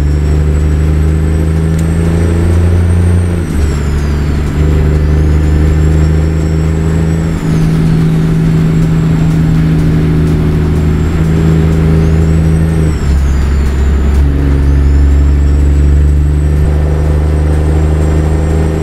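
A truck engine drones steadily and changes pitch as the gears shift.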